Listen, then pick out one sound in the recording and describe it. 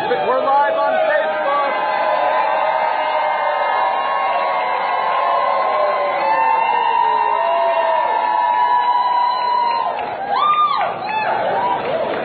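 A large crowd of young men and women sings and cheers together loudly.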